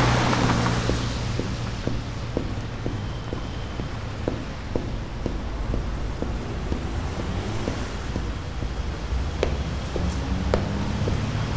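Footsteps tap at an even pace on a hard street.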